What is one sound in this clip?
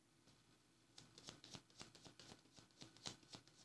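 Playing cards shuffle and riffle together.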